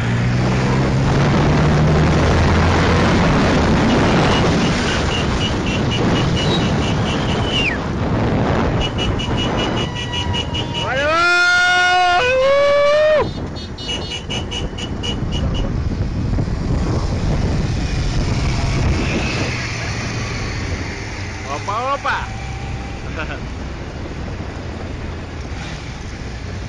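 Sport motorcycle engines roar as the bikes ride through city traffic.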